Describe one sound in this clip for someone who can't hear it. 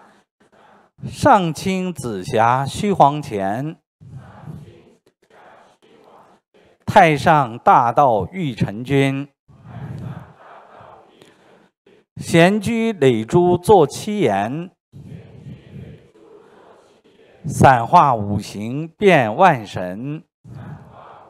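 A middle-aged man reads aloud into a microphone in short, lively bursts with pauses between.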